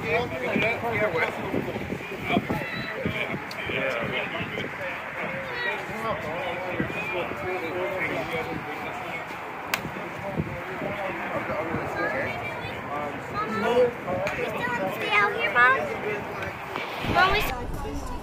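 Men talk and call out nearby, outdoors.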